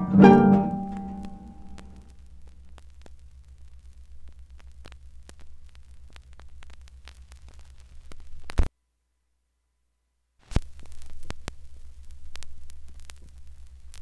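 A vinyl record crackles and hums softly.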